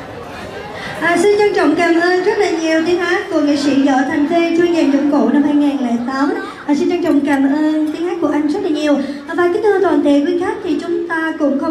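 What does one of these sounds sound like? A woman sings loudly through loudspeakers in an echoing hall.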